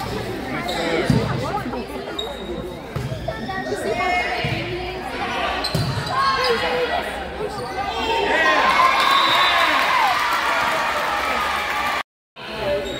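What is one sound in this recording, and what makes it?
Young girls shout and cheer in a large echoing gym.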